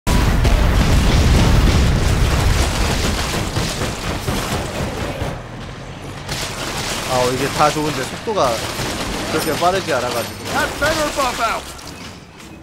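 A heavy vehicle engine roars as it crashes through a crowd.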